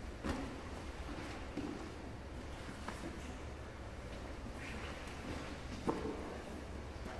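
Bodies thump and shuffle on a padded mat in an echoing hall.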